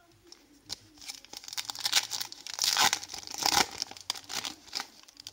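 A foil card pack crinkles and tears open up close.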